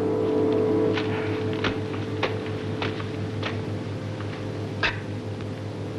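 Footsteps scuff slowly on gravel outdoors.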